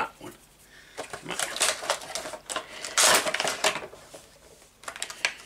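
Plastic packaging crinkles and rustles in a man's hands.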